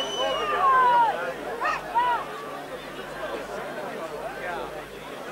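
A large crowd murmurs and calls out outdoors.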